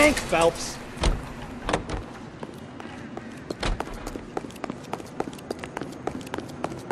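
Footsteps run quickly across a hard stone floor.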